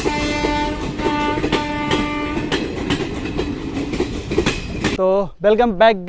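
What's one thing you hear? A train rumbles past close by with wheels clattering over the rails.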